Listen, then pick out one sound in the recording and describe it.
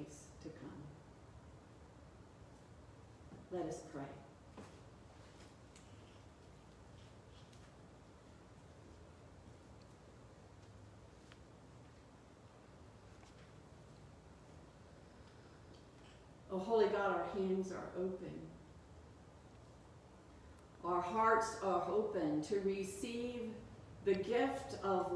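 An older woman speaks calmly and slowly, with long pauses.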